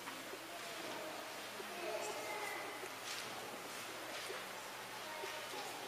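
A young man speaks calmly in a large echoing hall.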